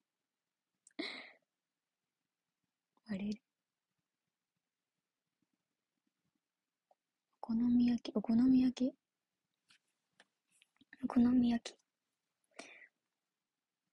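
A young woman speaks softly in short bursts, close to the microphone.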